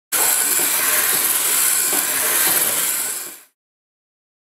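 A small robot's motors whir as it rolls across a wooden floor.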